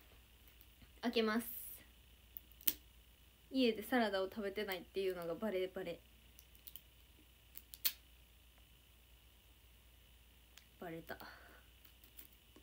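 A young woman speaks in short bursts, close to a phone microphone.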